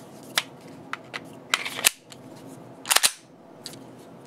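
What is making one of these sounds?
A magazine slides and clicks into a pistol.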